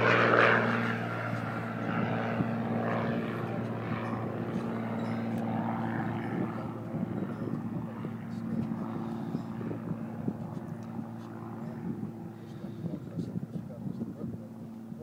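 A man's hands click and knock faintly on an airplane propeller.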